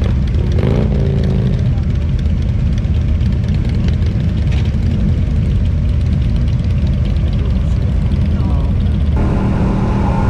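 Motorcycle engines idle and rumble nearby.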